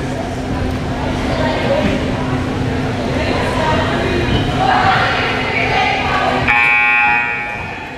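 A group of teenage girls chatter and cheer loudly together in an echoing gym.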